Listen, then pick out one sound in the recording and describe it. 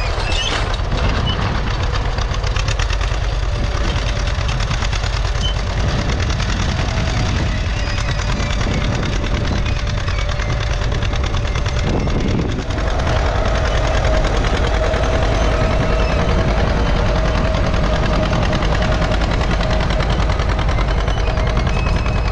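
A plough scrapes and crumbles through dry soil.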